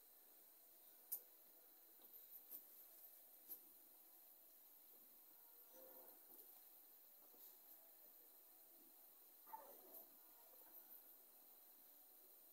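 Hands gently rub and scratch through hair.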